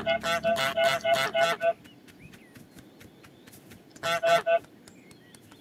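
A goose honks loudly several times in quick bursts.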